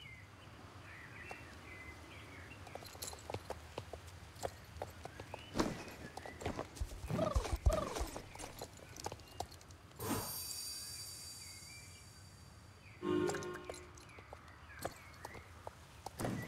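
Hooves of a horse thud on soft ground at a canter.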